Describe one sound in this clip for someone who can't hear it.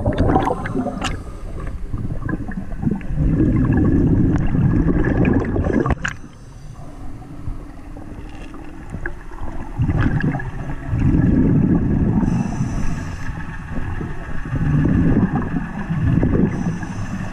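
Water rushes and churns in muffled, rumbling surges underwater.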